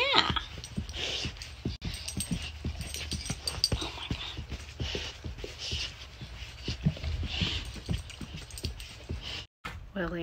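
Dogs sniff and snuffle up close.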